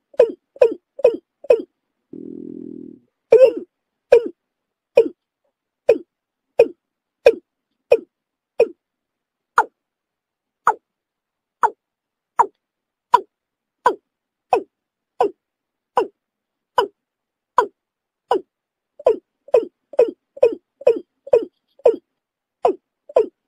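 A bird calls over and over in short, sharp notes.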